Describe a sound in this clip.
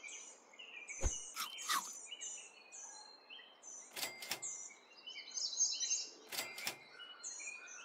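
Short electronic game sound effects swoosh and ring out.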